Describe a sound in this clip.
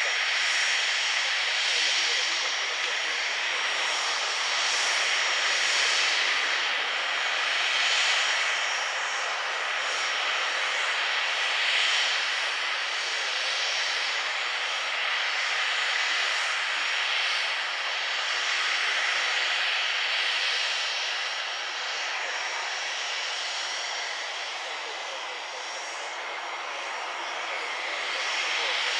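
A small jet's engines whine loudly and steadily as it taxis nearby.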